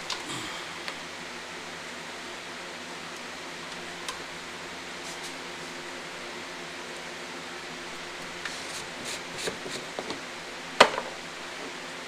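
Metal parts click and tap close by.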